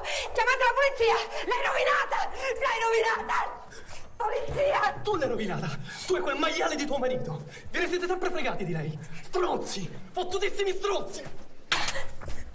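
A woman cries out and gasps in distress.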